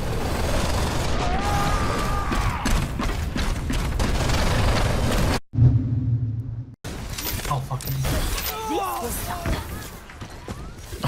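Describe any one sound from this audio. Gunfire and explosions crack loudly in a video game battle.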